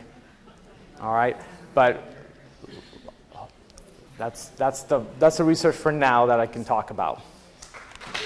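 A man speaks calmly and warmly into a microphone, heard through loudspeakers.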